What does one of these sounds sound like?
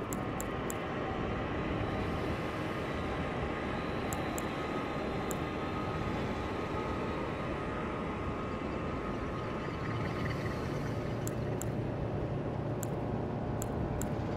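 Short, sharp menu clicks tick now and then as a selection moves.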